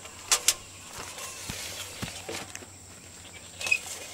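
A saw scrapes along a log.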